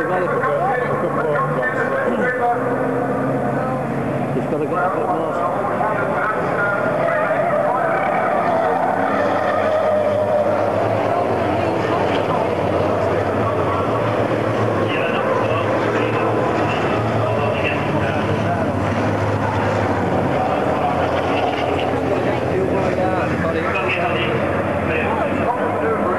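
Diesel racing trucks roar past at full throttle.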